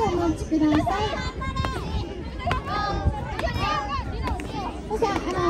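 Children shout and cheer loudly outdoors.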